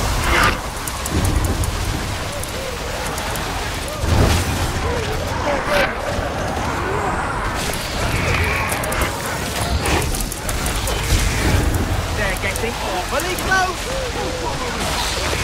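Electric energy crackles and buzzes in loud bursts.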